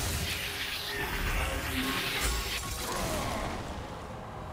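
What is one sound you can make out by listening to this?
Video game combat effects crackle and clash.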